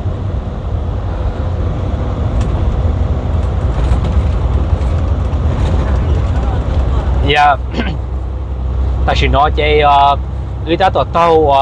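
Tyres hum on a concrete road.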